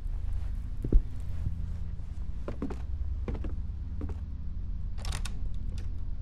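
Footsteps sound on a floor.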